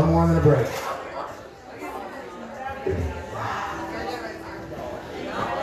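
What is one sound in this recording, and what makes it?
An acoustic guitar is strummed through a loudspeaker.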